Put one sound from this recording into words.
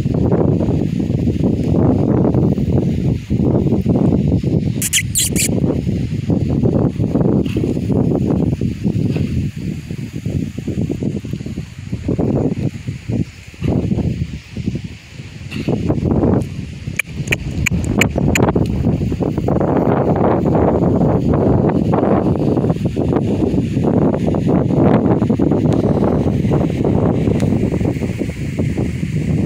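Horses' hooves thud as the horses gallop over dirt.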